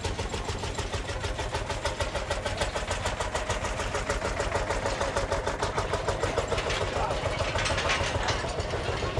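Tractor tyres roll slowly over the road.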